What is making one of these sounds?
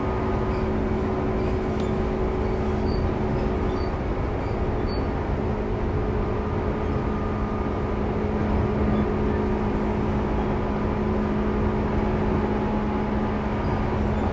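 An electric train hums steadily nearby.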